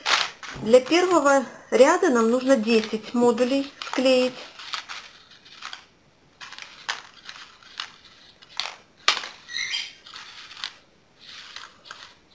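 Folded paper rustles and crinkles as it is handled.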